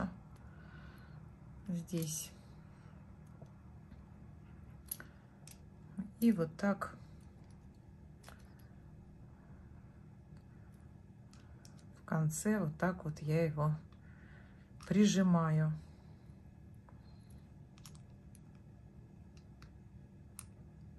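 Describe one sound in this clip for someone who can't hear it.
Small pliers click and tick softly against tiny metal parts.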